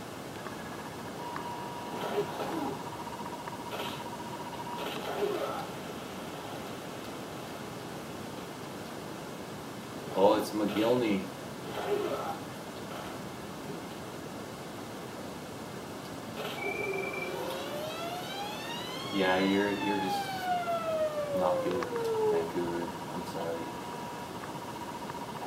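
Electronic video game sound effects play from a television speaker.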